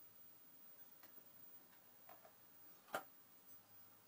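A vinyl record clicks and taps against a turntable spindle as it is set in place.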